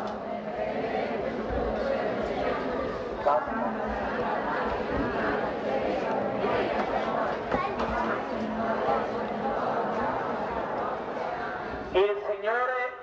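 A large outdoor crowd chatters loudly.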